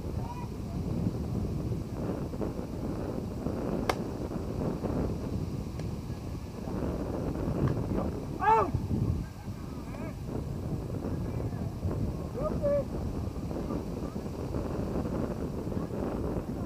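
Wind blows across a microphone outdoors.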